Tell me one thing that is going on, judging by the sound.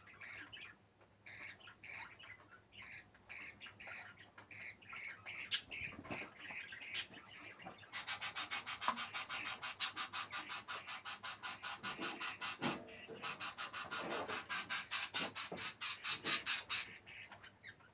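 A budgie chirps and chatters rapidly and loudly, close by.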